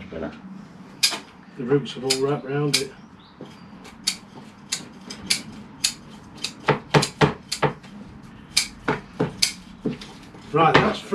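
Scissors snip and click sharply.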